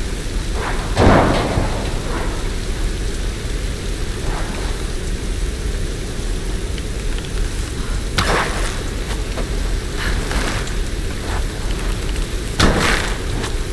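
A bow twangs as arrows are shot.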